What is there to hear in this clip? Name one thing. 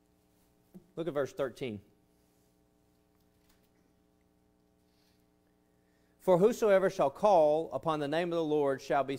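A man speaks with emphasis into a microphone, heard through a loudspeaker in a large room.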